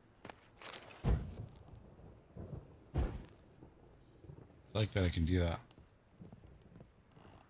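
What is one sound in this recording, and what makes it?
Heavy footsteps thud on wooden floorboards.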